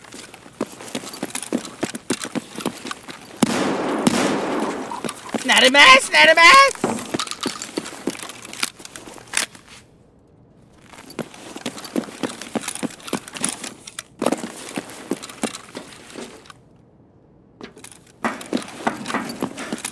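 Footsteps crunch on rubble and debris.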